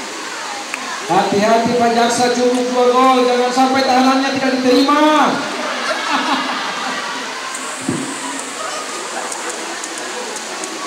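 Players splash through standing water.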